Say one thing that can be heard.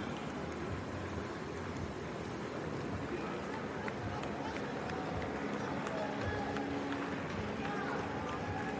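Spectators clap and cheer along the street.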